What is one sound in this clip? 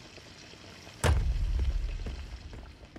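A wooden lid slams shut with a heavy thud.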